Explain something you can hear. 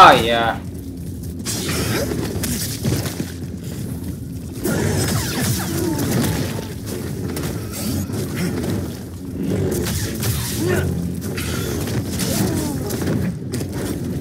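Large creatures screech and snarl.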